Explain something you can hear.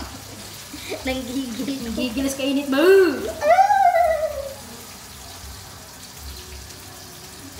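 Hands squelch food in a bowl.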